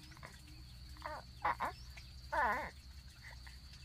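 A baby coos and babbles softly nearby.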